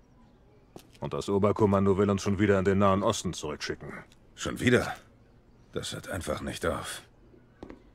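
An older man answers calmly, close by.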